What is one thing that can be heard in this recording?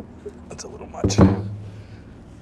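A plastic container thumps down onto a hard surface.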